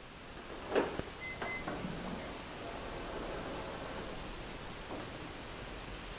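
A heavy door swings slowly open.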